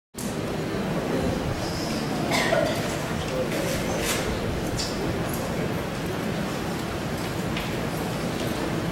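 An elderly woman speaks through a microphone.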